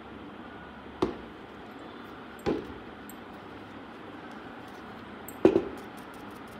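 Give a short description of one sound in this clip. A plastic jar knocks down onto a wooden tabletop.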